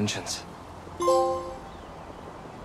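A short electronic chime rings out.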